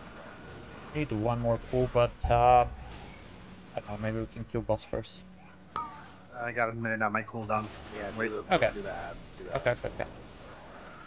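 A young man talks calmly into a microphone, close by.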